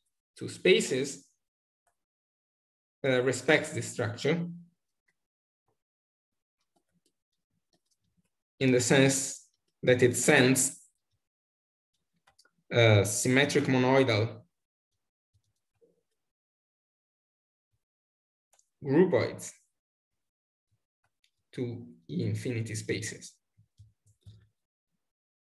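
A man speaks calmly through a microphone in short phrases with pauses, as if on an online call.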